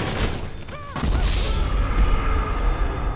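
A low booming rumble swells.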